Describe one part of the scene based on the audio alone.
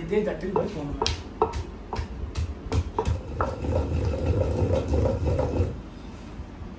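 A wooden pestle thuds and grinds in a stone mortar.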